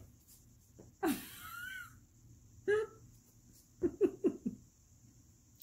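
A small dog whines and yelps in short high cries close by.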